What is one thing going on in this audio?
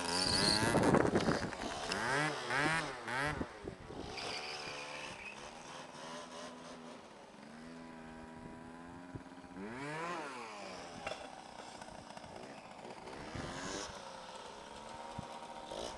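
A motorcycle engine revs high and drops as the bike rides past, rising and falling in pitch.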